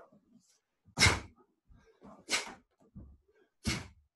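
A man's uniform snaps sharply with quick punches and kicks.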